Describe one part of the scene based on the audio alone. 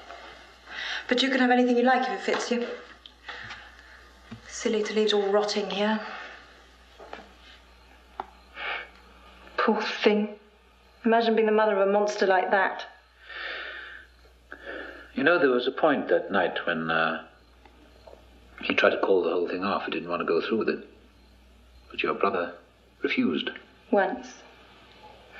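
A woman speaks quietly and tensely.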